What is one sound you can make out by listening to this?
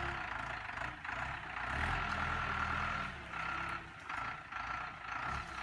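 A diesel engine of a backhoe rumbles and revs nearby.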